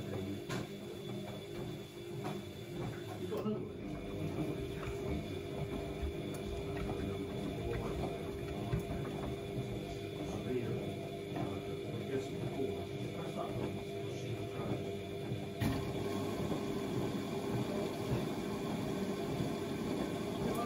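A washing machine hums and rumbles steadily as its drum turns.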